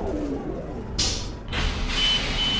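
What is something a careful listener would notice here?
Bus doors hiss open with a burst of air.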